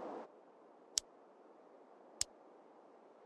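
Two short menu clicks sound.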